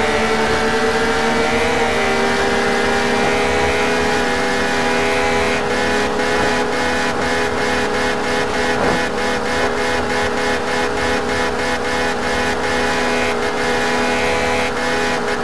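A car engine hums steadily at high revs.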